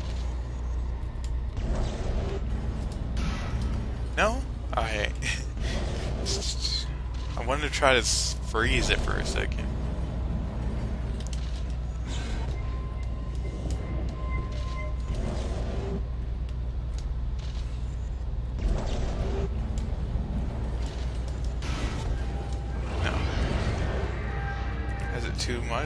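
A young man talks casually into a nearby microphone.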